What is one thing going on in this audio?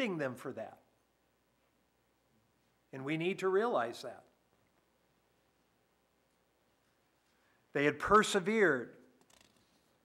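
An elderly man speaks slowly and earnestly through a microphone, with long pauses.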